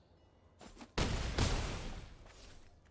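A digital whoosh and thud sound as game cards attack.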